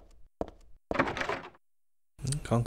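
A locked door handle rattles briefly.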